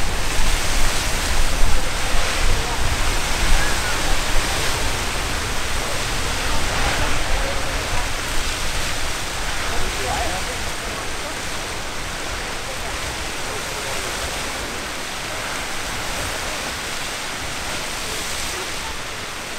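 Wind rumbles across open ground outdoors.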